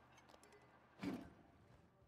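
A heavy stone wheel thuds against a wall with a dull knock.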